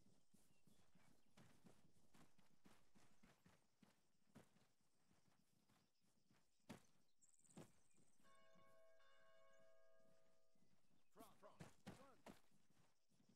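Rifles fire in bursts of sharp gunshots nearby.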